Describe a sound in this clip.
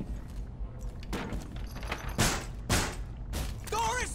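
A wooden barricade is knocked into place with loud, sharp thumps.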